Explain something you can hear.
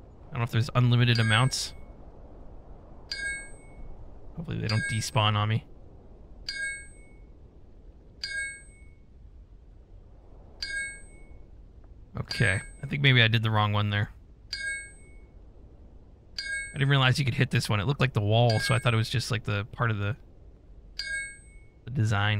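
A pickaxe strikes rock with sharp, ringing clinks.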